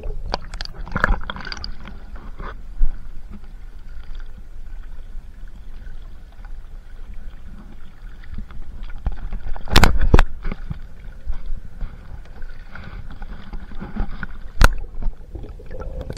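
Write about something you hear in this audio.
A paddle splashes in the water.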